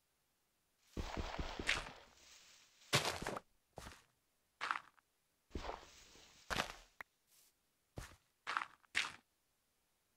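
Dirt crunches and crumbles as it is dug away in quick bursts.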